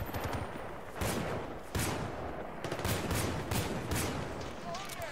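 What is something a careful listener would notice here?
A pistol fires single sharp shots.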